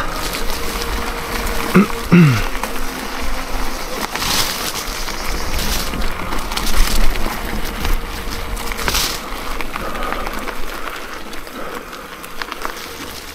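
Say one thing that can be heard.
A bicycle frame rattles and clatters over bumps.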